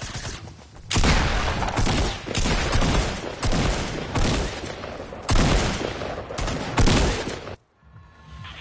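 Rapid clattering video game building and shooting sounds play.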